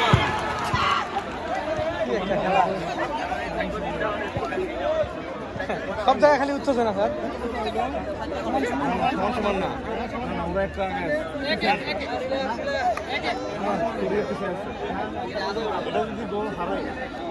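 Several men and boys talk and call out outdoors.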